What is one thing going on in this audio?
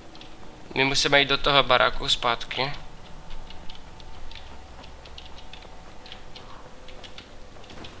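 Footsteps run quickly over dirt and leaves.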